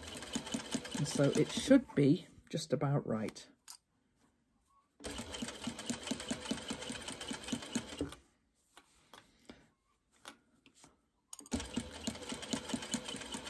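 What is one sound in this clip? An electric sewing machine stitches through fabric in short bursts.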